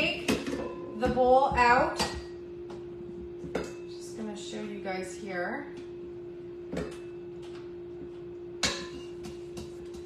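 A spoon scrapes and clinks against a bowl.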